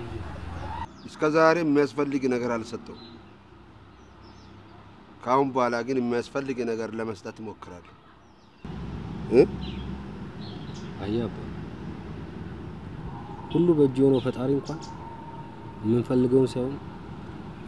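A man speaks softly and emotionally close by.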